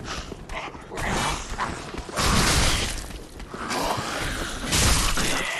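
Swords clash and strike armour.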